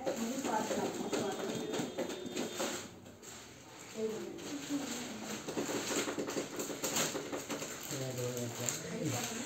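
Several children talk nearby, overlapping one another.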